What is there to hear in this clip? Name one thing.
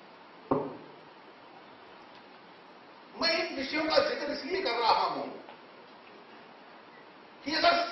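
A middle-aged man speaks forcefully into a microphone.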